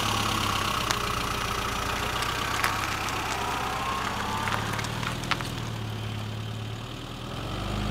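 A classic Mini pulls away and drives off into the distance.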